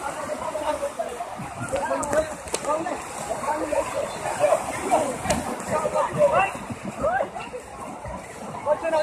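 Several young men talk and shout excitedly nearby, outdoors.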